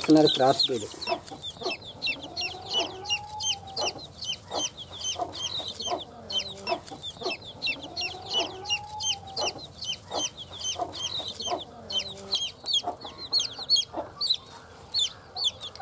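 A hen clucks softly.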